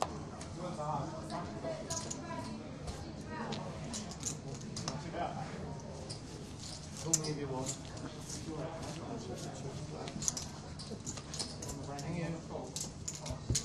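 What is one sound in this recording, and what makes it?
A man talks in a low voice nearby.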